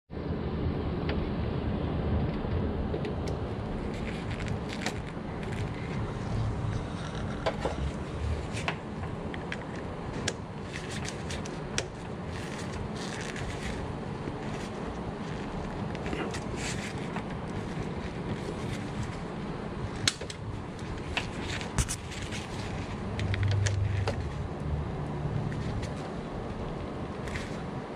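Plastic tool tips click and tap against breakers and wires.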